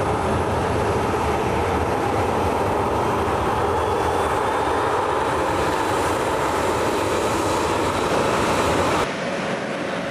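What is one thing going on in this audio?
A jet airliner's engines roar loudly as it rolls along the runway.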